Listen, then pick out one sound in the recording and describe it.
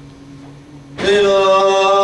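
A man sings loudly into a microphone in a large hall.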